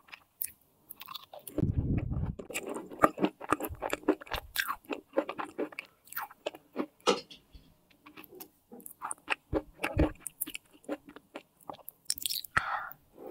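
A young woman chews crunchy pastry with close, crisp mouth sounds.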